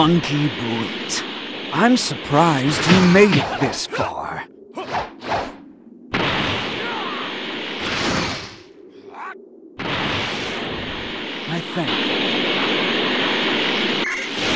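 An energy blast roars with a loud rushing hiss.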